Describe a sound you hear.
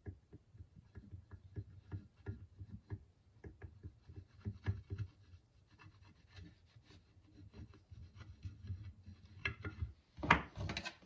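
Hands rub and knock softly against a wooden handle on a wooden surface.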